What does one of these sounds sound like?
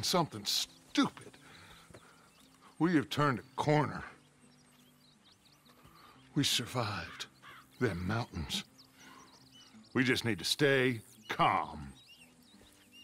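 Another man answers in a low, calm voice up close.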